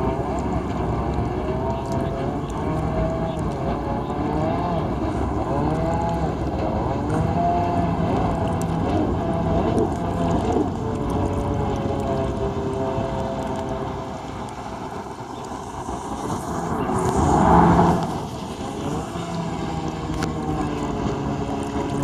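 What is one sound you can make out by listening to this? A jet ski engine drones and revs over open water.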